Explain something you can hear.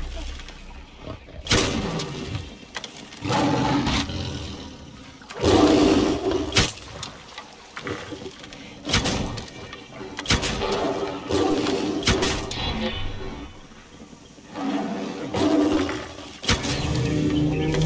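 A bow twangs as arrows are shot again and again.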